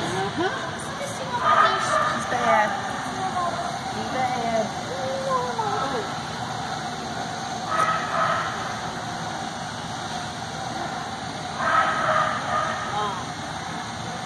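A man calls out commands to a dog in a large echoing hall.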